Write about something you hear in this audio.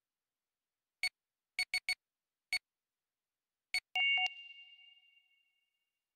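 Short electronic menu clicks sound several times, the last one ringing briefly.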